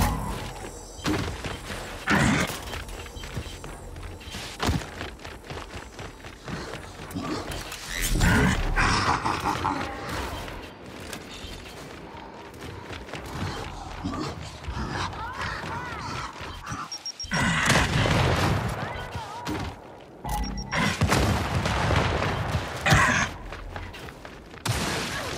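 Heavy armoured footsteps thud quickly on stone.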